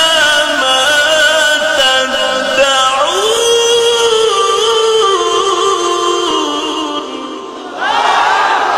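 A man chants in a long, wavering melody through a microphone, with loud echo.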